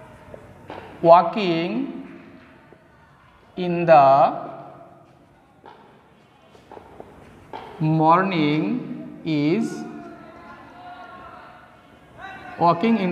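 A man speaks clearly through a close microphone, in short phrases with pauses.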